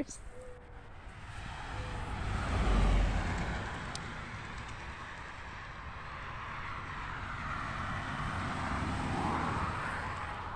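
Wind blows across the microphone outdoors, rising and falling.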